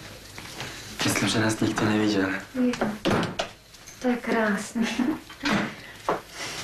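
A woman speaks close by with feeling.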